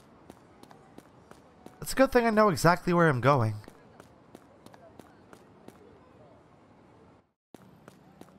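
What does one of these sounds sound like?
Footsteps tap quickly on pavement.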